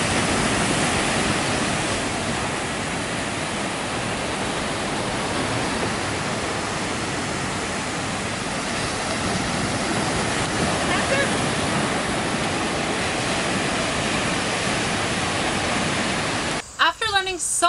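Waves wash onto a beach.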